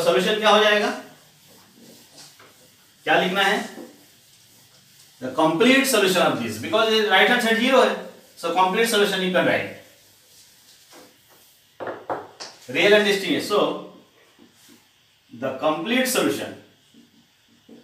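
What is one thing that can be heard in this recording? A man speaks steadily in short phrases, close by, as if lecturing.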